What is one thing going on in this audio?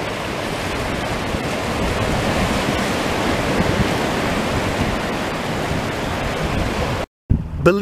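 Ocean waves wash and break over rocks.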